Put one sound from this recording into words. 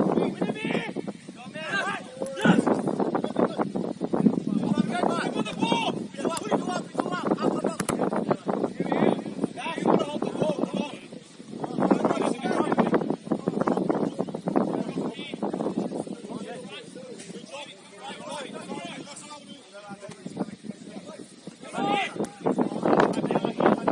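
Young men shout and call to each other outdoors across an open field.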